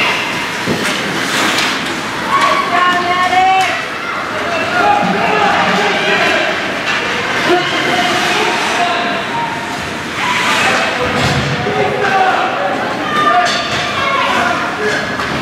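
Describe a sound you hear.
Spectators shout and cheer from nearby.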